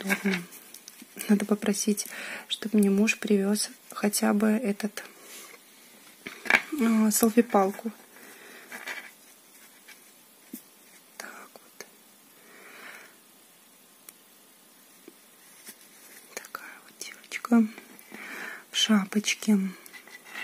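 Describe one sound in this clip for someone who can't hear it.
Hands rustle softly while handling a small doll.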